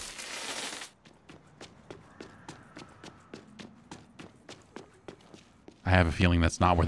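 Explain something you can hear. Footsteps tap quickly and evenly on hard ground.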